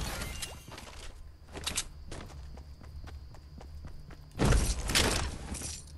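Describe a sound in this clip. Footsteps thud on a wooden floor and stairs.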